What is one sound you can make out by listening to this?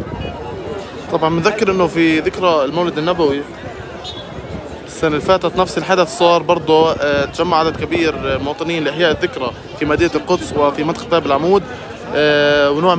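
A man talks loudly and with animation close by.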